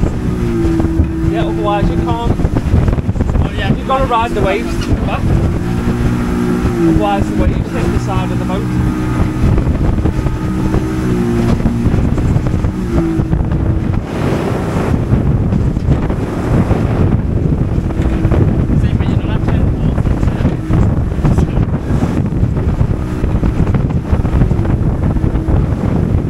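Wind blows hard against a microphone outdoors.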